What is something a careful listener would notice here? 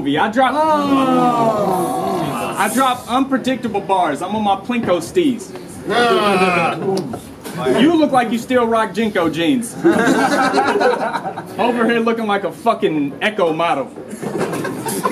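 A young man raps loudly and with animation, close by.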